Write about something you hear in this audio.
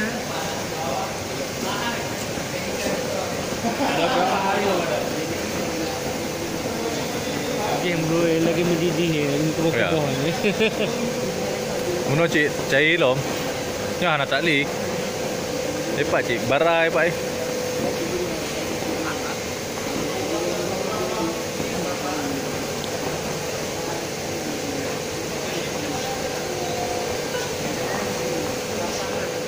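Machinery hums steadily in a large echoing hall.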